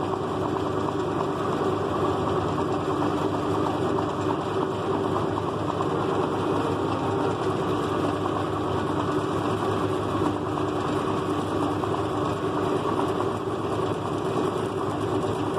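A machine hums and whirs steadily.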